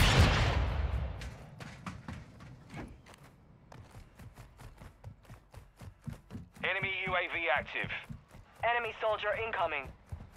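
Footsteps run across a rooftop.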